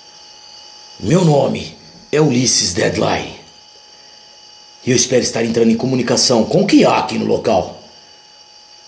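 A cassette recorder plays back a voice through a small speaker.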